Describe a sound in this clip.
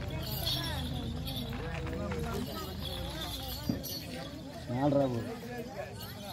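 Ankle bells jingle as a dancer spins.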